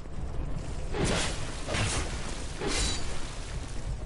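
A sword swishes through the air several times.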